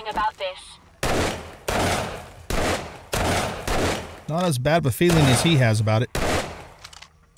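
A gun fires in quick bursts.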